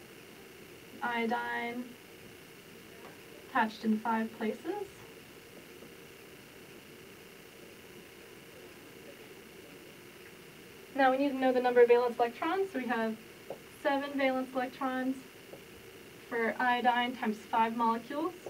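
A young woman speaks calmly and clearly, as if explaining.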